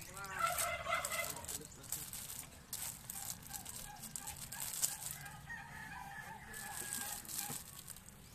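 Plastic bags crinkle and rustle as bread rolls are handled.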